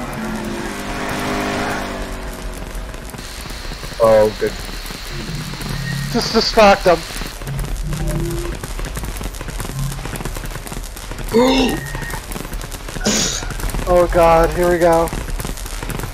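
A repair tool crackles and sizzles with sparks.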